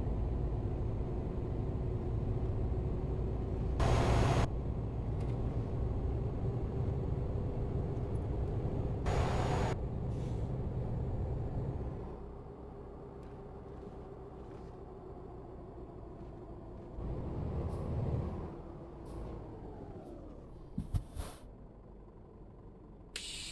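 A truck engine drones steadily, echoing loudly at first and then quieter in the open.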